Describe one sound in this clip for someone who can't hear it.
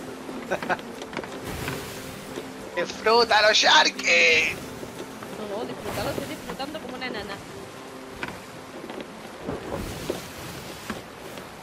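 Ocean waves wash and splash steadily.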